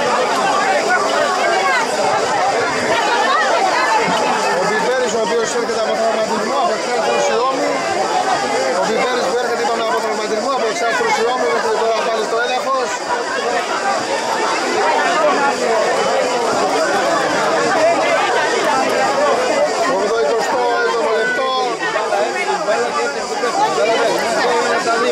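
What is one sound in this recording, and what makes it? Several men talk and call out to one another outdoors at a distance.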